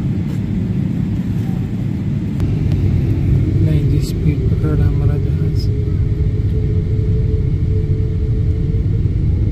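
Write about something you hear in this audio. An airliner rumbles as it rolls along the runway.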